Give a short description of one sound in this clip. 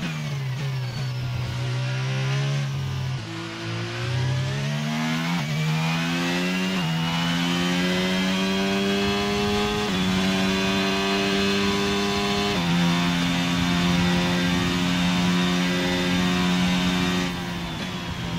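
A Formula 1 car's engine revs high and shifts up through the gears.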